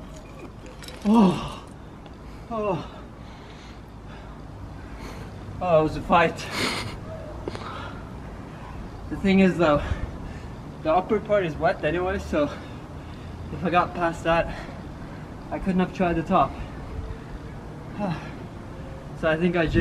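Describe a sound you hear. A young man grunts and gasps with effort, close by.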